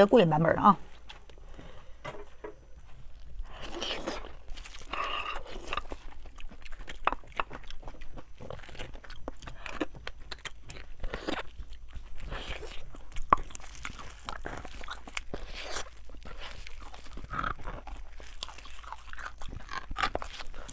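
A young woman chews and slurps food wetly, close to a microphone.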